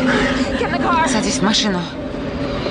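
A young woman cries out close by.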